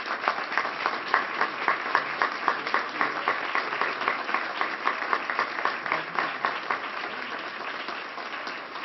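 A group of people applaud steadily, fading slightly toward the end.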